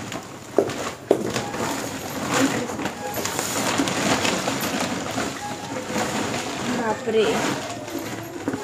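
A plastic sack rustles and crinkles as it is handled.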